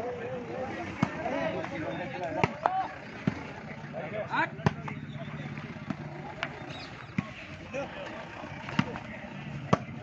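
Hands strike a volleyball with sharp slaps outdoors.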